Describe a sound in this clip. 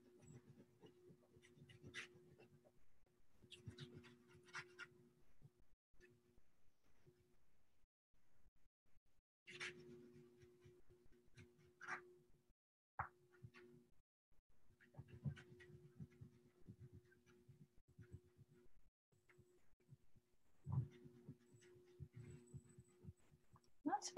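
Pastel crayon scratches softly across paper.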